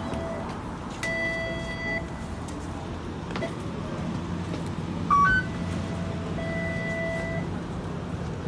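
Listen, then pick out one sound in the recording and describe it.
A tram's door chime beeps in steady tones.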